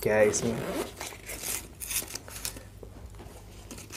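A zipper is pulled open with a quick rasp.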